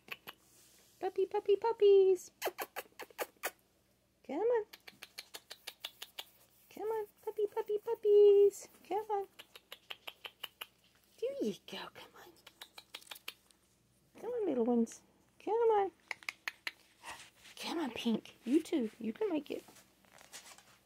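Puppies whimper and squeal close by.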